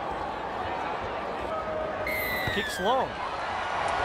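A boot thumps a ball.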